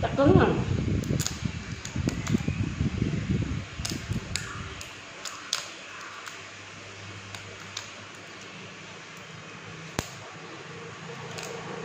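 Shrimp shells crackle and snap as they are peeled by hand.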